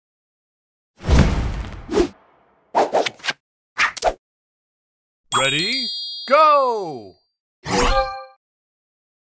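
A game's chimes and whooshes play as the match starts.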